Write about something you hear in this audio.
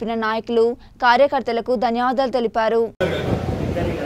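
A young woman reads out calmly through a microphone.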